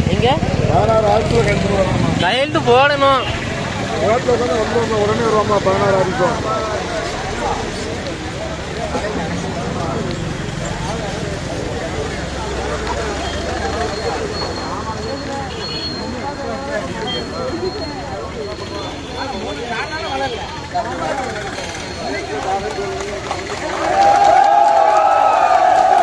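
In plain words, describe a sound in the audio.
A large crowd of men chatters and murmurs outdoors.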